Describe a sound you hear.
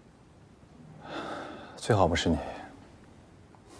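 A young man answers calmly close by.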